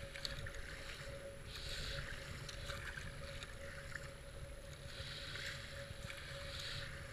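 A river rushes and gurgles around a kayak.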